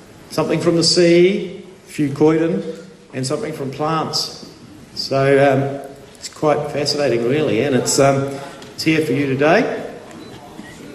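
An older man speaks calmly into a microphone over loudspeakers in a large hall.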